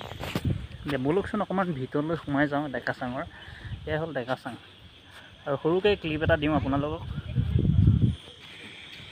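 A young man talks close up with animation.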